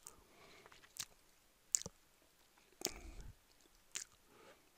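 A mouse button clicks a few times.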